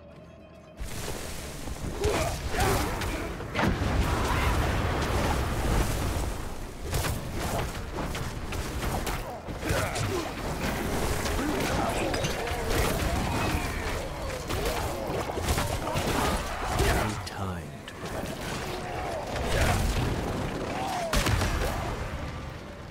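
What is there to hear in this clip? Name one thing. Fiery blasts and combat noises boom and crackle.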